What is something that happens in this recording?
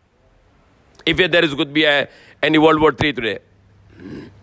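A man speaks firmly into a microphone, heard through loudspeakers.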